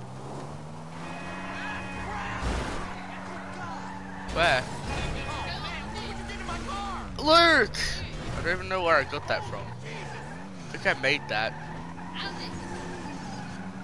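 Tyres skid on dirt and gravel.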